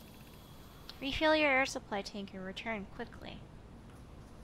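A young woman speaks briefly and excitedly, close to a microphone.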